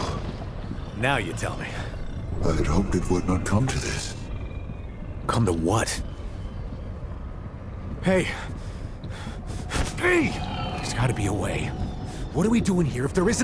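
A man speaks slowly in a low, solemn voice.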